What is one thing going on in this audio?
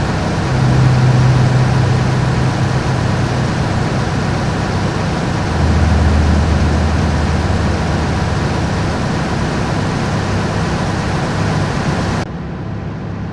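A truck engine rumbles steadily, heard from outside.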